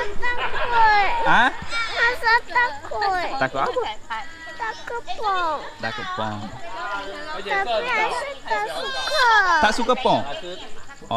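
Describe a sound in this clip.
A little girl talks in a high voice close by.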